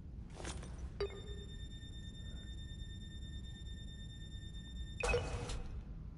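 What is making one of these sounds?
A hand scanner gives a steady electronic tone.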